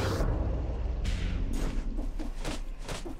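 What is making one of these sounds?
A sword slashes and strikes in quick bursts.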